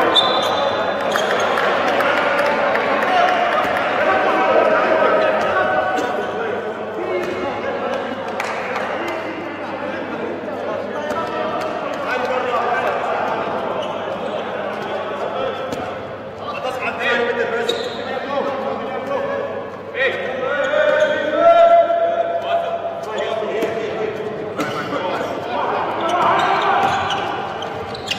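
A ball bounces on a hard floor in an echoing hall.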